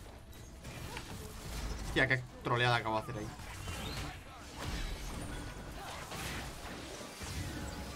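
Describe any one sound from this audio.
Video game battle sound effects clash and whoosh.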